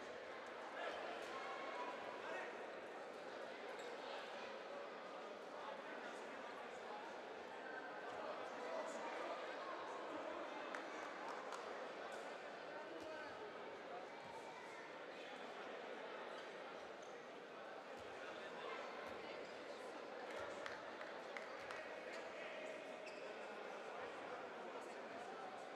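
A crowd murmurs steadily in a large echoing hall.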